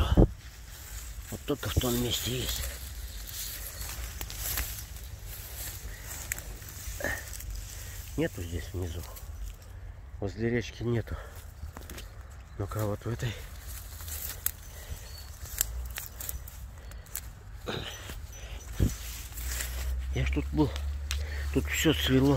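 Grass and leaves rustle as someone pushes through them.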